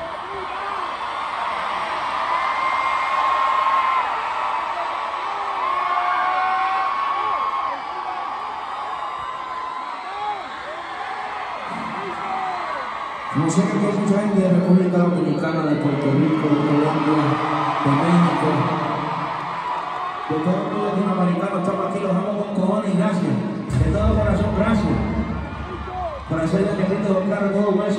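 A large crowd cheers and screams in a big echoing arena.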